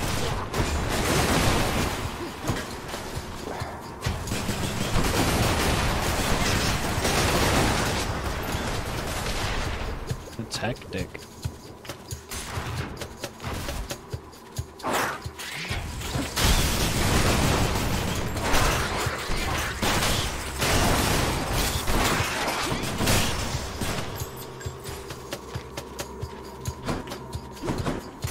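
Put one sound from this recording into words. Video game combat effects crackle and boom.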